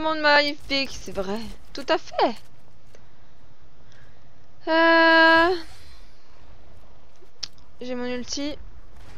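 A young woman speaks close to a microphone in short, lively bursts.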